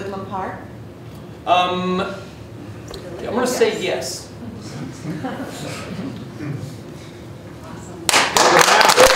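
A man speaks calmly to an audience.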